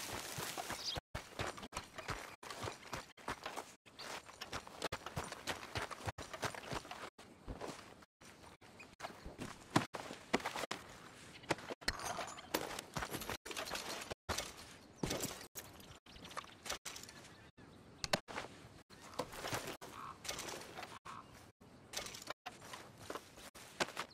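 Footsteps crunch on dirt and grass.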